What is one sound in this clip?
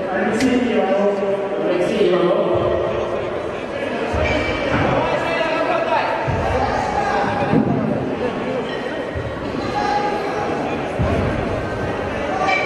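Two kettlebells thud as they drop to a lifter's chest in a large echoing hall.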